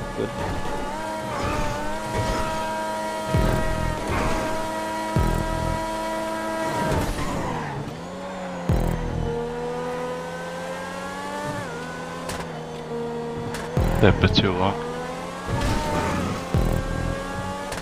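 A high-revving race car engine whines steadily, its pitch rising and dropping with gear changes.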